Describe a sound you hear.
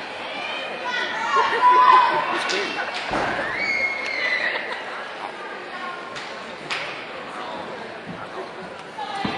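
Young women shout a chant together.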